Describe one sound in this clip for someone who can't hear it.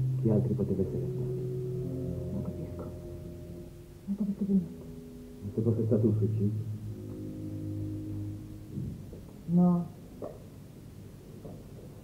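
A woman speaks quietly and tensely.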